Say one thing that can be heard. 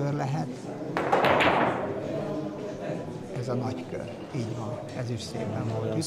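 Billiard balls click against each other on a table.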